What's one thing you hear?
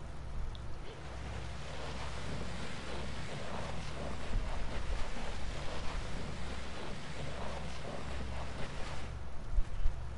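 A heavy suitcase scrapes and slides across a wooden floor.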